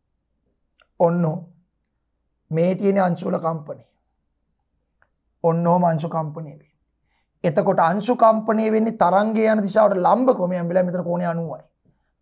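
A man speaks calmly in bursts, as if explaining, close to a microphone.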